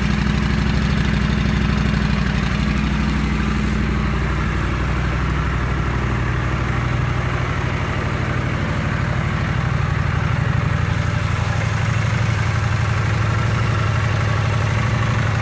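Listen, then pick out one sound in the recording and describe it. A motorcycle engine idles with a steady, throbbing rumble.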